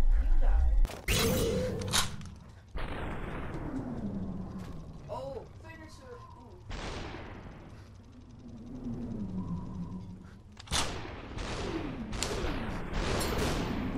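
Gunshots bang sharply and ring out, one after another.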